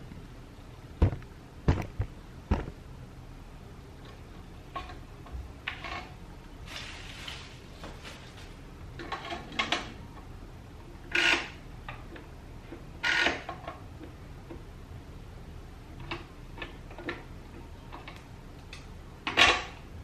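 Parts of a kitchen mixer click and knock as they are fitted together.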